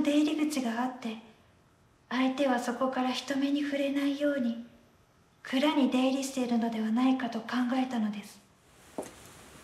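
A woman sings slowly and softly close by.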